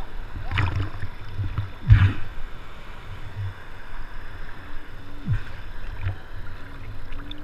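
Water sloshes and splashes close by.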